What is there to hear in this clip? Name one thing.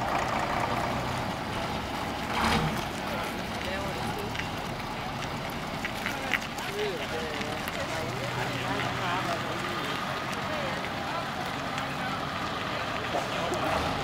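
A bus engine rumbles as the bus drives slowly past.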